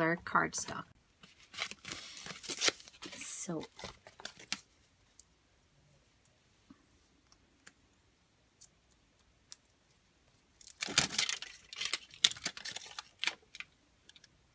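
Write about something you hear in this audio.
Aluminium foil crinkles and rustles in hands.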